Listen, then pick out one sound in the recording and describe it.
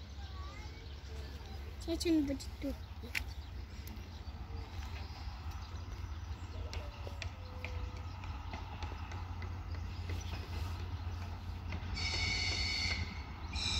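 Train wheels clank on the rail joints.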